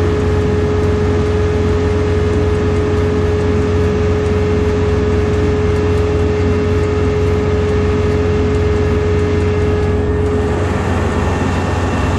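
A small engine hums steadily at low speed close by.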